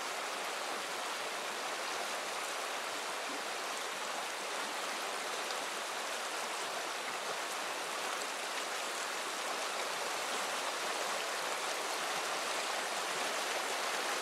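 A shallow river rushes and gurgles over rocks close by.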